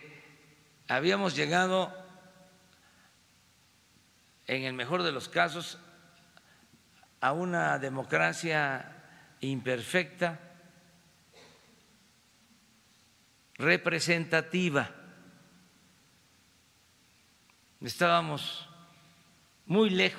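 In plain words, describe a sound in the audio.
An elderly man speaks calmly into a microphone, in short phrases with pauses, in a room with a slight echo.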